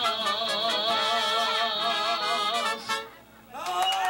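A man sings with vibrato into a microphone.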